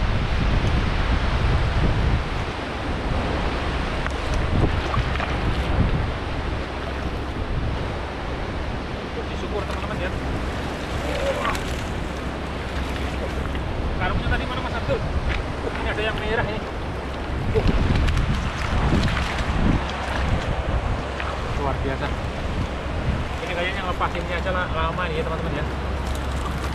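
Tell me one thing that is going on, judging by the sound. Fish flap and splash in a net.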